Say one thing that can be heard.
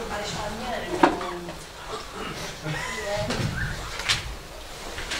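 A wooden chair scrapes and knocks on a floor.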